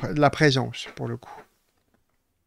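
A middle-aged man speaks calmly into a microphone, close up.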